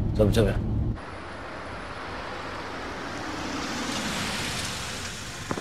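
A car drives along a street.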